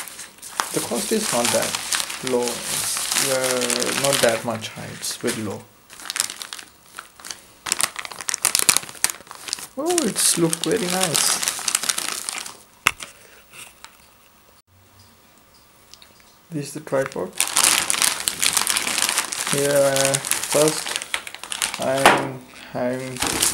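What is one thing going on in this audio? Plastic wrap crinkles and rustles as it is handled close by.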